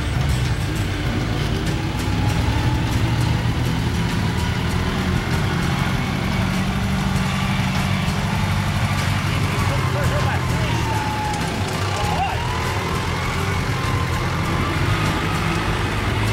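An off-road truck engine roars as it labours uphill.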